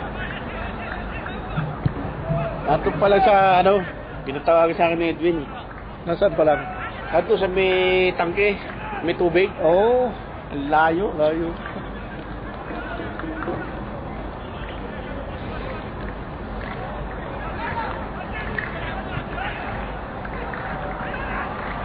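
A crowd murmurs in the stands outdoors.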